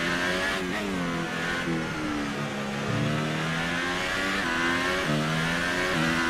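A racing car engine screams at high revs, dropping and rising in pitch through gear changes.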